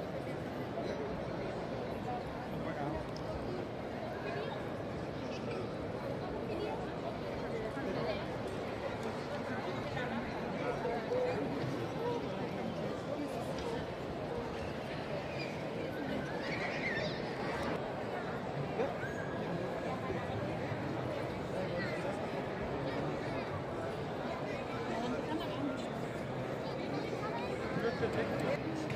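A crowd of people chatters and murmurs throughout a large echoing hall.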